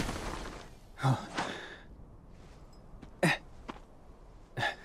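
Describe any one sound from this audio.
Boots scuff on gritty ground.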